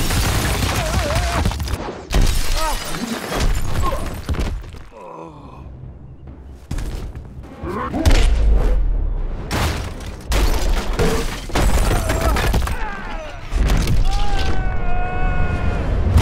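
Stone walls crash and shatter into falling rubble.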